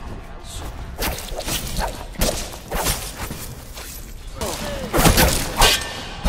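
A blade swishes and strikes with sharp metallic hits.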